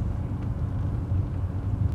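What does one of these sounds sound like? Rain patters on a car window.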